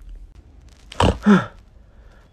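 A young man lets out a loud, startled exclamation close by.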